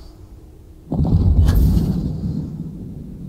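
A spacecraft roars low overhead.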